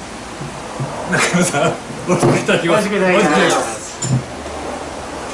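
Men laugh loudly together.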